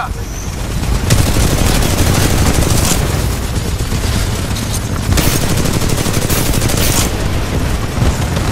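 Explosions rumble and crash.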